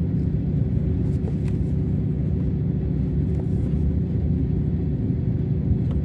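Paper pages rustle as a hand turns them.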